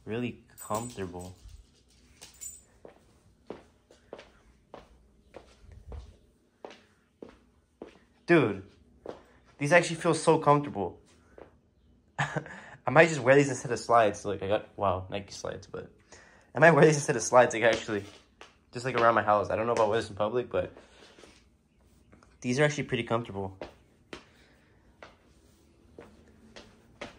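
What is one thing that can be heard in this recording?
Soft footsteps pad across a hard floor.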